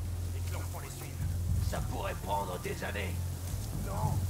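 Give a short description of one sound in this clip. Tall grass rustles as someone creeps through it.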